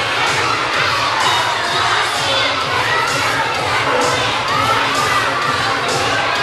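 Young performers sing together in a large echoing hall.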